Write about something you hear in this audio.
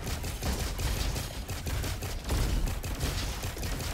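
A rifle fires rapid shots.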